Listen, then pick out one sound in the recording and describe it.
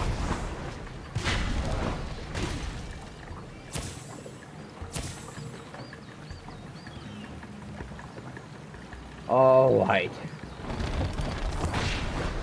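Air rushes past in soft whooshes as a flying figure glides and swoops.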